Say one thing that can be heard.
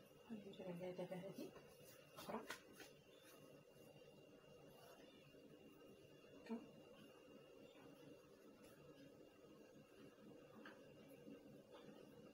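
Hands softly pat and fold dough.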